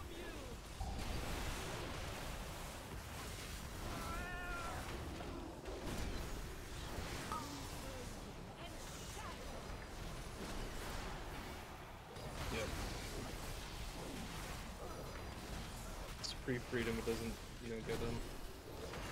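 Game spell effects crackle and whoosh in a busy battle.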